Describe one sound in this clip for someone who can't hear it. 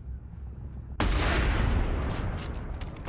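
A rifle fires with a loud boom.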